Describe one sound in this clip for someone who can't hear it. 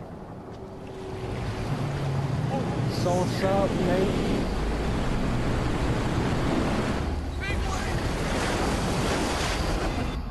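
A huge wave roars and crashes, growing louder.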